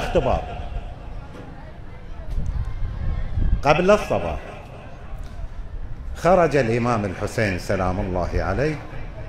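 An elderly man speaks slowly and solemnly through a microphone in a large echoing hall.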